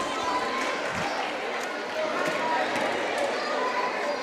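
A basketball thumps on the court as it is dribbled.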